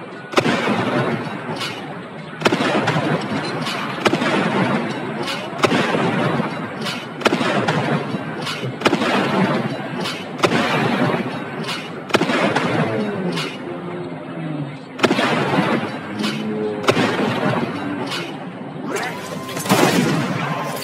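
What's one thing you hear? Pistol shots fire one after another, echoing.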